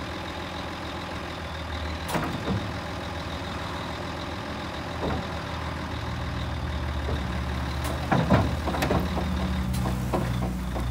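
A hydraulic pump hums steadily as a dump trailer bed tilts up.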